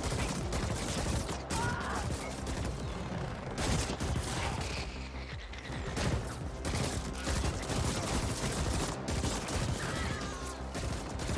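Gunfire and laser blasts crackle in rapid bursts.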